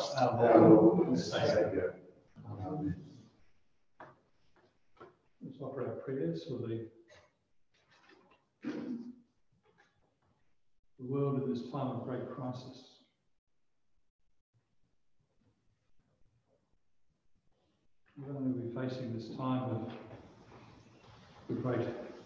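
An elderly man speaks calmly into a microphone, with pauses, in an echoing room.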